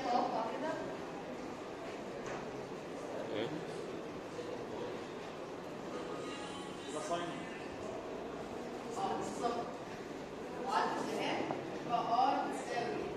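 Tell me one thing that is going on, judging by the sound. A young woman speaks calmly, explaining at a moderate distance in a room with some echo.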